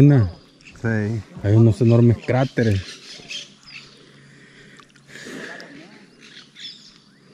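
Water laps and splashes gently.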